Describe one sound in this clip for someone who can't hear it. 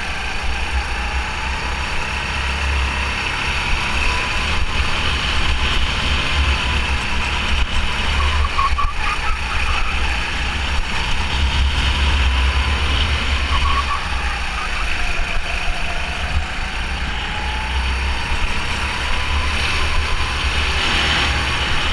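A kart engine drones and whines close by, rising and falling in pitch.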